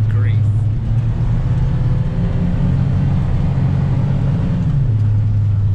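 A diesel engine drones loudly and steadily from inside a vehicle cab.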